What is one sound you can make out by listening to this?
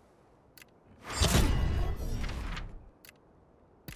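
A bright chime rings out with a whoosh.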